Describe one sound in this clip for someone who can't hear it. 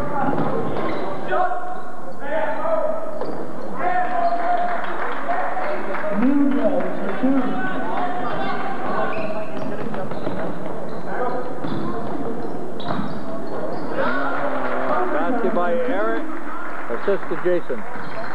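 Spectators talk and shout nearby in a large echoing gym.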